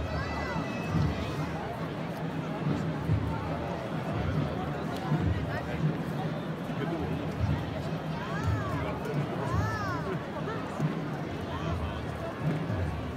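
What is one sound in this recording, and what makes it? Children's voices chatter and call out in the crowd.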